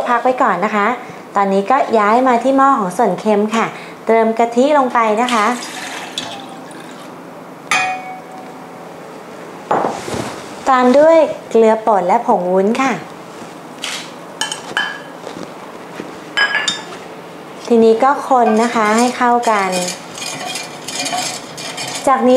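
A young woman talks calmly and clearly into a microphone.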